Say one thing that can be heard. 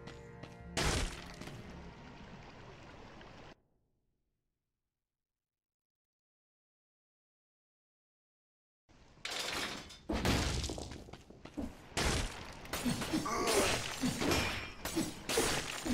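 Sword slashes and impacts clang and thud in a game fight.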